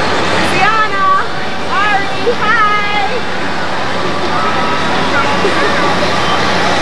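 A young child calls out in a high, sing-song voice nearby.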